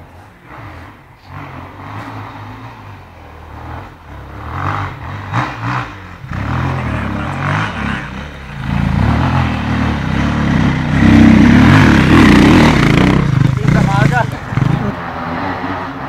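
A dirt bike engine revs hard, growing louder as it climbs close by and then fading.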